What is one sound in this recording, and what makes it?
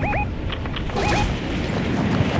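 A short chime sounds.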